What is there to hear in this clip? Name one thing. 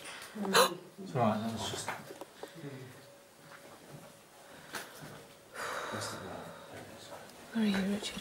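A man speaks quietly and tensely nearby.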